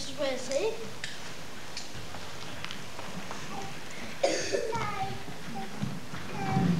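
Young boys speak and call out in a large echoing hall.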